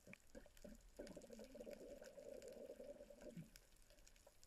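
Air bubbles gurgle underwater.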